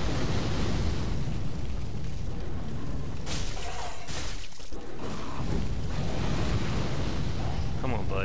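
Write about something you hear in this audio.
Flames roar in a loud burst.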